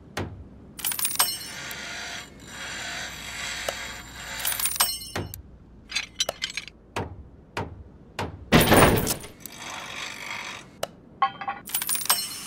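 Short electronic clicks and chimes sound from a game.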